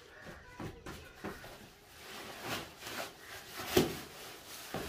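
A heavy sack thumps down onto the ground.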